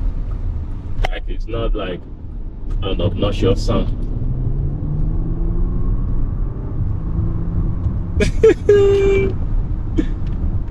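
A car engine hums steadily inside the cabin.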